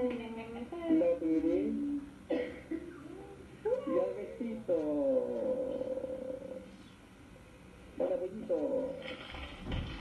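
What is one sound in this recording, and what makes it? A baby babbles and coos nearby.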